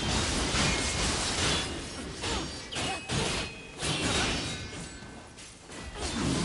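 Magic bursts with a crackling whoosh.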